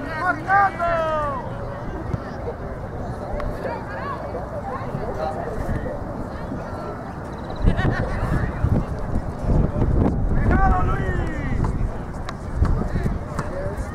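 Spectators on the sidelines shout and cheer from a distance.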